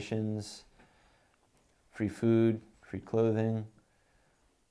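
A young man speaks calmly and hesitantly, close to the microphone.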